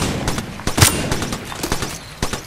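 A gun's magazine clicks and rattles during a reload.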